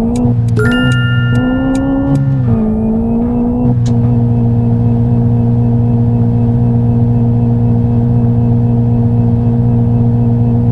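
Tyres rumble over a dirt road.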